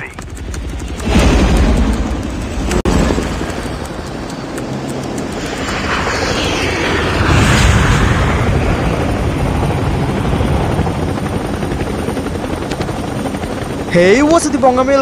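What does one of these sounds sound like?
Helicopter rotors roar and thump overhead.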